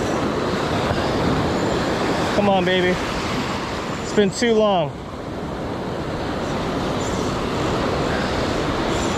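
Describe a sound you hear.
Waves break and wash steadily onto a shore.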